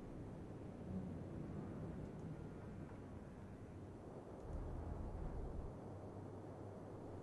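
Waves roll and churn on a stormy sea.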